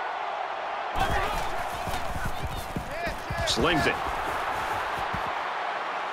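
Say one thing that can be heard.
Football players collide with thudding hits.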